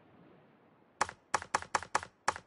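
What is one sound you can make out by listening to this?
Short menu clicks sound in quick succession.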